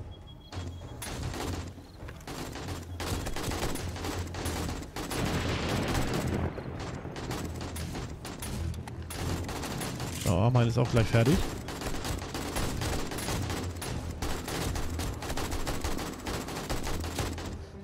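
A rifle fires rapid, sharp shots.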